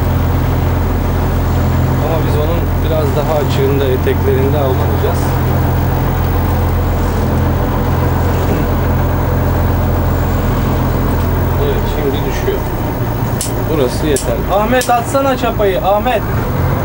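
A boat's engine drones at cruising speed.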